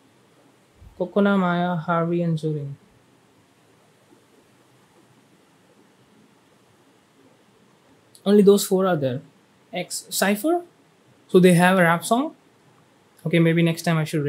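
A young man speaks calmly and close into a microphone, in short bursts with pauses.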